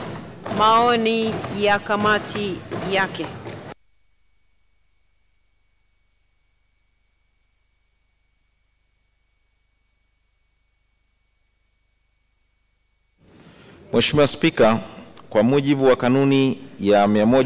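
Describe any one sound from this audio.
A man speaks formally into a microphone in a large echoing hall.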